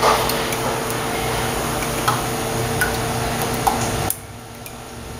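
Liquid pours and splashes into a jug.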